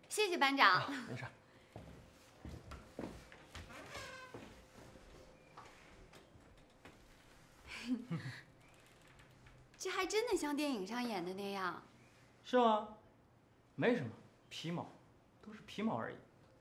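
A young woman speaks brightly and laughs.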